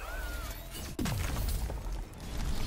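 A heavy crash booms and rumbles away.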